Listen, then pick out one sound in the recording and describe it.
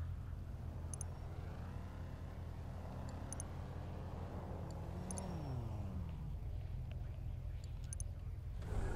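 A mouse clicks a few times.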